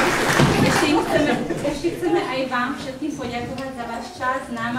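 A choir of men and women begins to sing.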